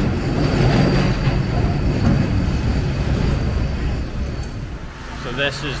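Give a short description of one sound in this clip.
A streetcar rumbles along its tracks.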